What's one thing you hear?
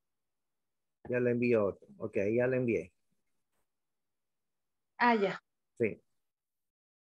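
An adult speaks calmly over an online call.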